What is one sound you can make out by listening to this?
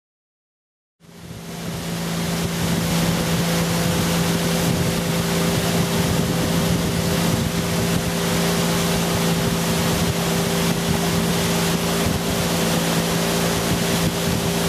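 Water rushes along a boat's hull.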